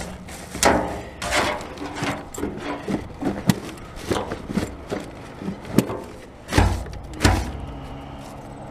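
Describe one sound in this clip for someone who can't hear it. Glass bottles clink and rattle against rubbish in a plastic bin.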